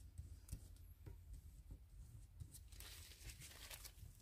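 Fingers press and rub on a soft rubber mould.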